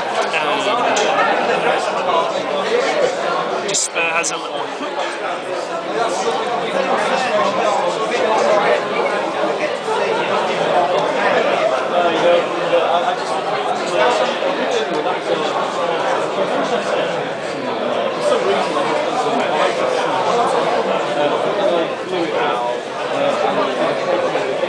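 Many people chatter loudly all around.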